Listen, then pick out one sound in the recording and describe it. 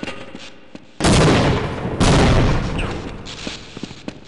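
A grenade explodes with a loud, echoing boom.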